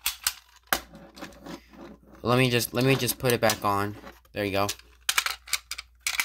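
Plastic parts click as they are handled.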